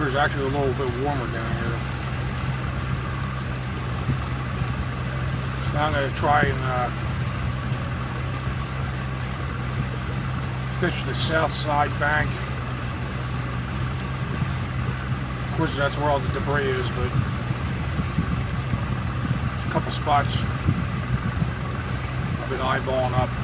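Water splashes against a moving boat's hull.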